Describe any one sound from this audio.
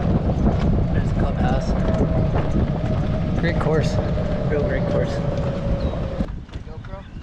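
A golf cart motor hums and rattles as the cart rolls along a path.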